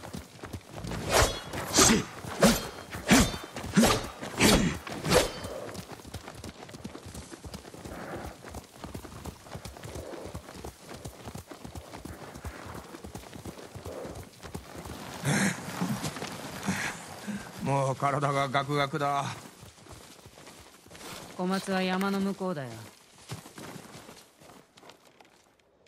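Horses' hooves thud and clop on grassy ground.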